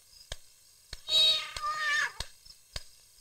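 A young girl sobs and cries.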